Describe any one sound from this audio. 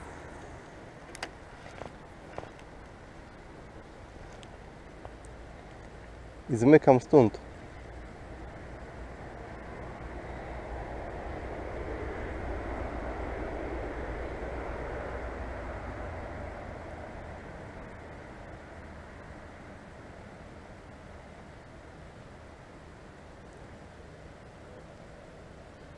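Wind blows steadily outdoors, rising and easing.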